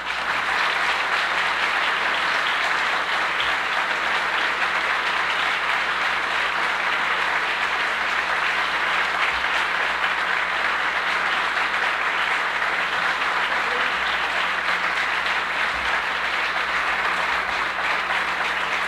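An audience claps and applauds steadily.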